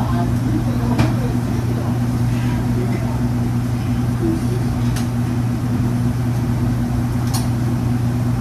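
Metal utensils clink now and then.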